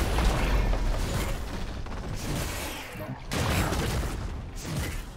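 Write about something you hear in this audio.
Video game combat effects of spells and blows clash and burst.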